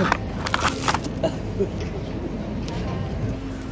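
A young man laughs and talks close by.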